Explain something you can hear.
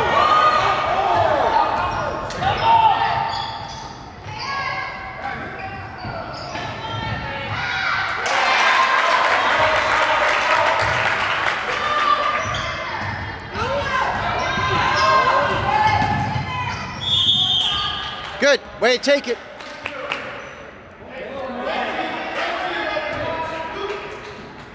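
Young players shout and call out in a large echoing gym.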